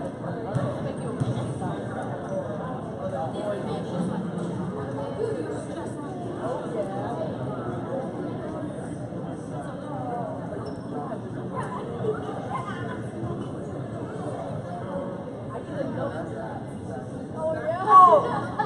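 A crowd chatters steadily in a large echoing hall.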